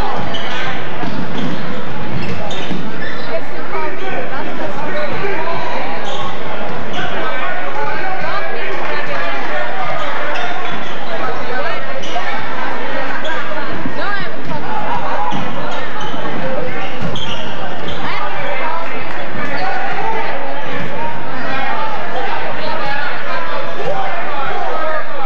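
A crowd of spectators chatters and calls out throughout a large echoing gym.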